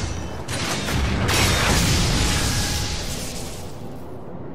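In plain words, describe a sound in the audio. A loud magical blast roars and crackles.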